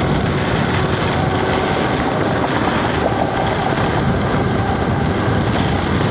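An electric scooter's tyres hum along the pavement.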